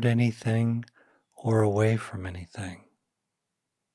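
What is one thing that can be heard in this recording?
An older man speaks calmly and closely into a microphone.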